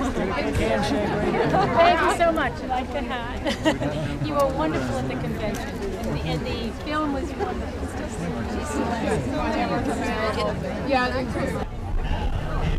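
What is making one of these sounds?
A woman talks cheerfully up close.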